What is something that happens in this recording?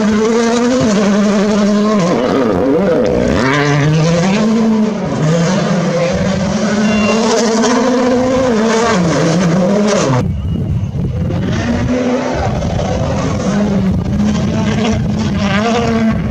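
Gravel sprays and crunches under rally car tyres.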